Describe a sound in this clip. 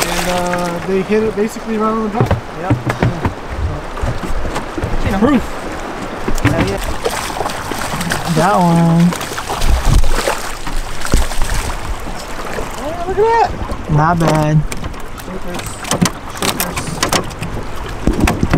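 River water rushes past outdoors.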